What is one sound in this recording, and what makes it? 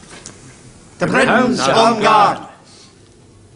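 A group of men call out together in unison.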